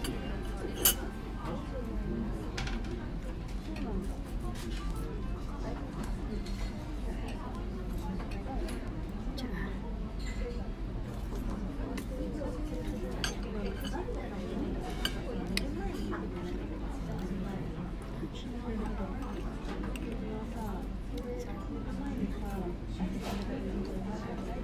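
A spoon clinks against a glass dish.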